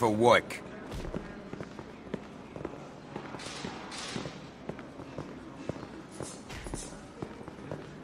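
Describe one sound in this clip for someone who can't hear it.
Footsteps clank on metal stairs and walkways.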